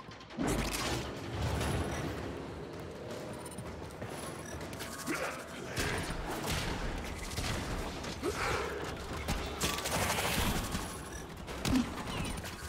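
Sword swings whoosh and clang.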